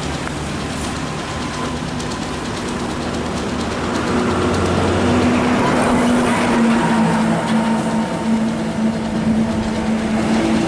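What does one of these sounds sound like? A large bus engine drones as it approaches and grows louder.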